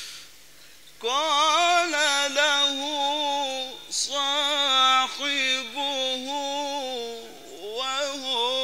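A man chants melodiously into a microphone, heard loud through loudspeakers.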